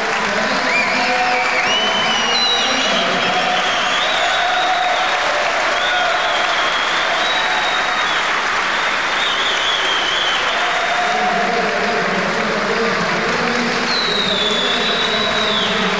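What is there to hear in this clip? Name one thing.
Spectators whistle shrilly.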